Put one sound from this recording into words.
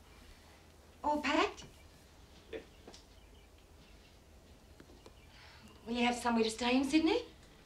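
A woman speaks in a tense, raised voice close by.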